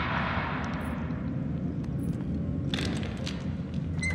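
A metal lever clanks as it is pulled.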